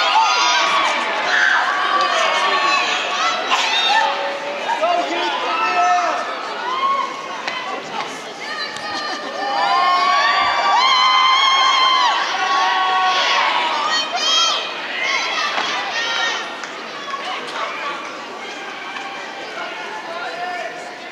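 A large crowd cheers, whoops and shouts in an echoing hall.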